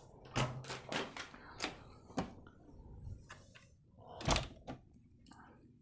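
A sliding door clicks and rattles as it opens.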